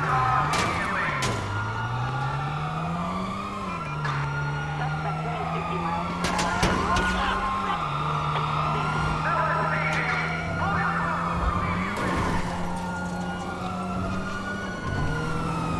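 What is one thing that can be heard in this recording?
A small car engine hums as the car drives along a street.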